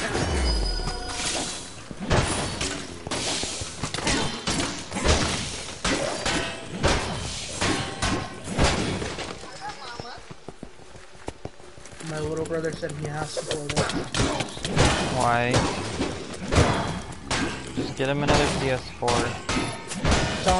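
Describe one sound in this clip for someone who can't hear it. Weapons clash and strike in quick bursts of combat.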